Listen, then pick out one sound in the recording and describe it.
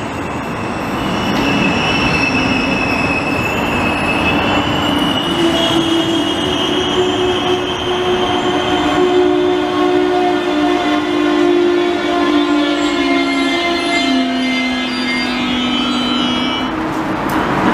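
Train brakes squeal with long high whines.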